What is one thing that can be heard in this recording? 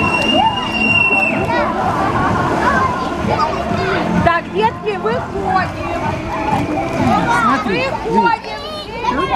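Children shout and squeal with excitement nearby.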